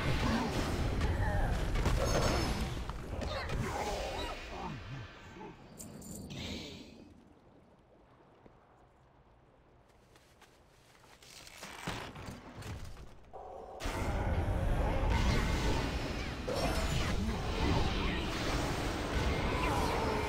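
Weapons strike in rapid, clashing hits.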